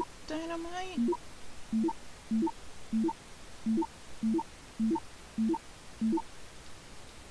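Short electronic menu beeps sound in quick, even succession.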